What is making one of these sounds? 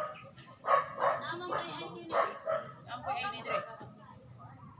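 Young children talk and call out excitedly nearby, outdoors.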